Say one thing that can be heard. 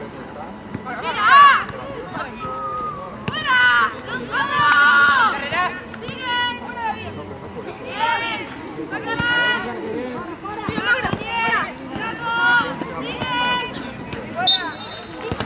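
Young boys shout loudly outdoors.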